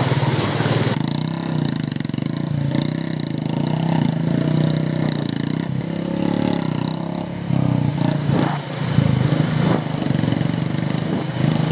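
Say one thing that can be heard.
A waterfall rushes down onto the road.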